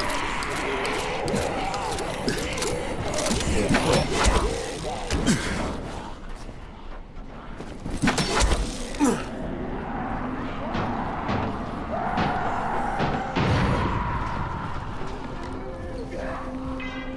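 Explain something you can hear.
Footsteps run and thud across sheet-metal roofs.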